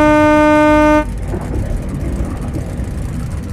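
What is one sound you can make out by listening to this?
A car engine rumbles as the car drives off.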